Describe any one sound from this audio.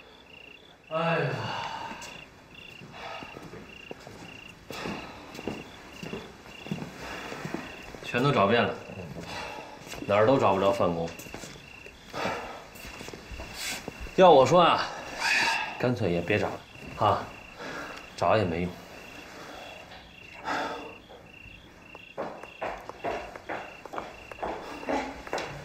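Two men talk calmly nearby.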